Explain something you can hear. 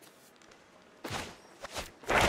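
A game card makes a soft whoosh as it is played.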